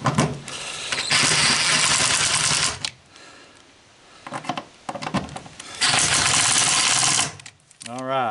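A cordless drill whirs in loud bursts, driving screws.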